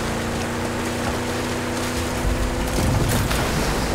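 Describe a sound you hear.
Water splashes under a vehicle's wheels.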